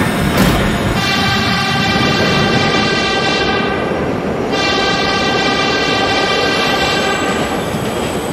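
Train wheels squeal on a curve.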